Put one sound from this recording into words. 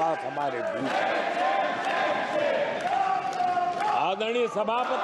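An elderly man speaks forcefully into a microphone in a large hall.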